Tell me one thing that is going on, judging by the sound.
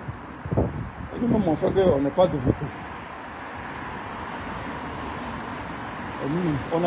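A middle-aged man speaks close to a phone microphone, with animation.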